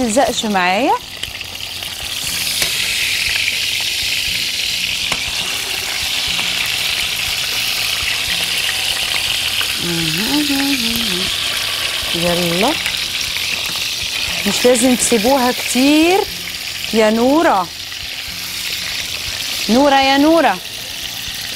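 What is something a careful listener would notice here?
Meat sizzles and fries in hot oil in a pan.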